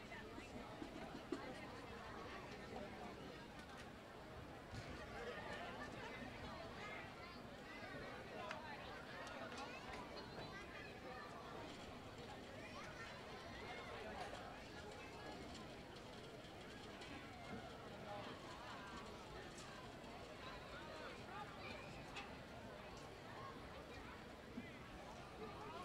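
A crowd chatters at a distance outdoors.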